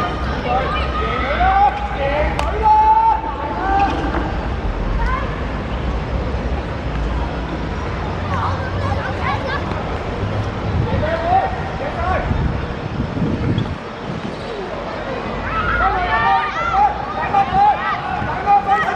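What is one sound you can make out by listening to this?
Young boys shout and call out across an open pitch.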